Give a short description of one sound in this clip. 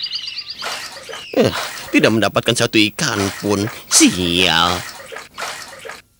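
Water splashes softly as a wading bird steps through shallows.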